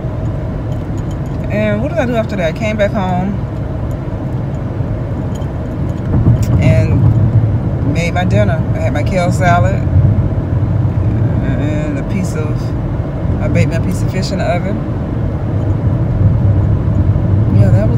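A car engine hums low and steady inside a moving car.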